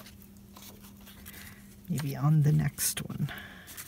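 Paper rustles and crinkles as hands handle it.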